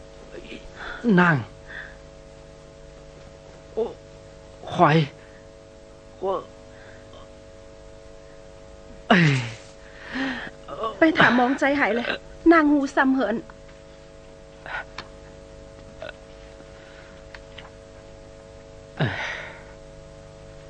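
A young man speaks weakly in short, strained bursts.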